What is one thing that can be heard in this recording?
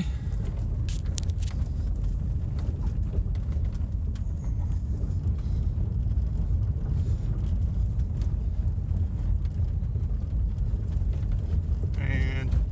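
A vehicle rumbles steadily along a bumpy dirt road.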